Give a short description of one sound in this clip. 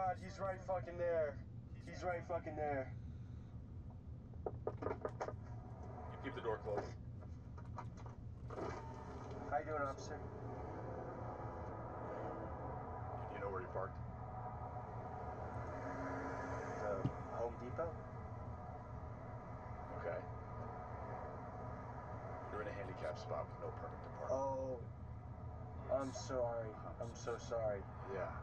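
A young man talks in short bursts.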